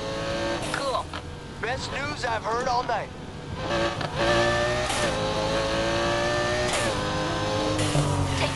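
A V10 sports car engine roars at high speed, shifting gears.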